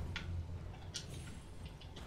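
Water splashes underfoot.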